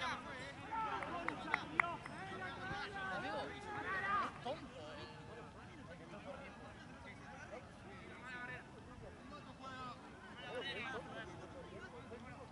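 Young men shout and call out to each other outdoors, some way off.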